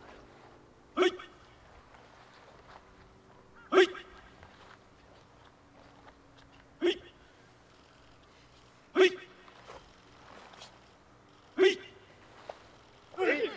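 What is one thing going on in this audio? A group of men and women shout together in short, sharp bursts.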